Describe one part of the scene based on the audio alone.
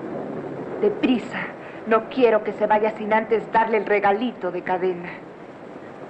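A young woman speaks with animation nearby.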